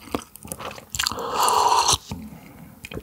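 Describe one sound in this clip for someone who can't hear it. A young man exhales with a satisfied sigh after drinking.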